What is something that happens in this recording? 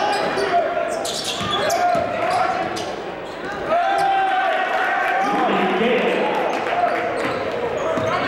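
Players and spectators call out in the echoing gym.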